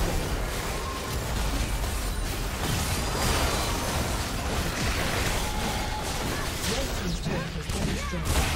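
Magical spell effects crackle and whoosh in a fast game battle.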